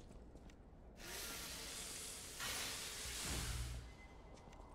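A weapon fires with a burst of crackling sparks.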